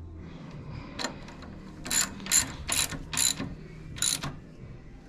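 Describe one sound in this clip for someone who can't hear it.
A ratchet wrench clicks in quick bursts.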